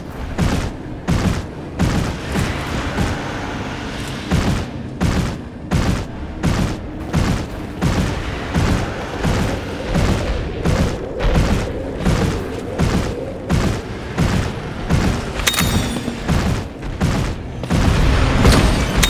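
A large beast's heavy footsteps pound quickly and steadily on stone.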